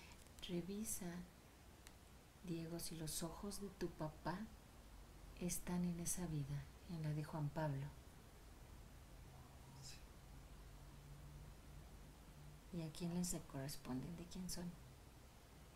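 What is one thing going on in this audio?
A woman speaks calmly and softly nearby, in short phrases with pauses.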